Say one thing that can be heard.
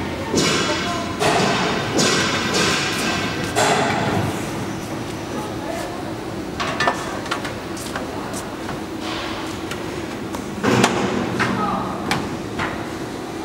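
Metal trim clatters and scrapes against a hard edge.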